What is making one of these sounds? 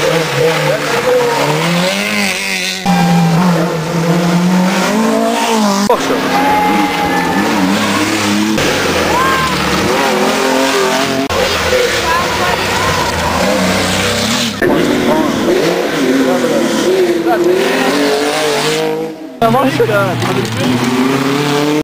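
Rally car engines roar and rev hard nearby.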